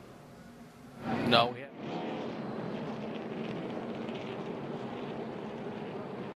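A race car engine roars at high speed.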